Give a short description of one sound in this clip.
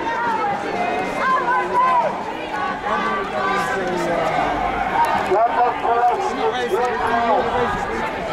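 A crowd of men and women chants and talks loudly outdoors.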